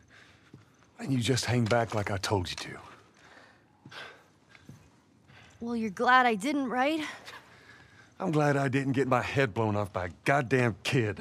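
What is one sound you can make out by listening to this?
A man speaks gruffly and with annoyance, close by.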